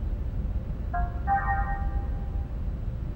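A short electronic chime beeps once.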